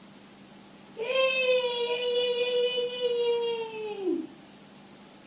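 A young woman voices a long, steady held note close by.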